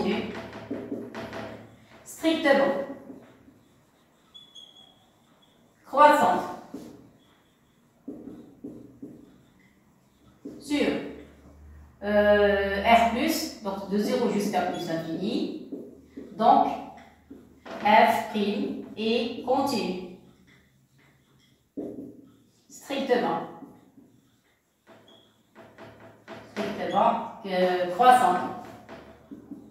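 A woman speaks calmly, close by, with pauses.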